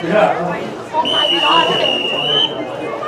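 A referee's whistle blows one long, steady blast.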